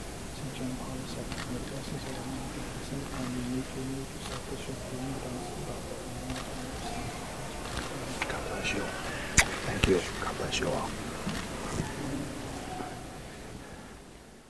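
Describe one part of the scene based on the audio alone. A large congregation rustles and murmurs in a vast echoing hall.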